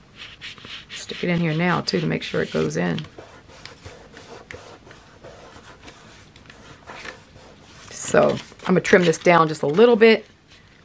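Paper rustles and crinkles softly.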